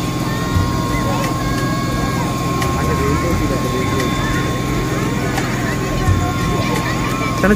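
A fire engine's pump hums steadily.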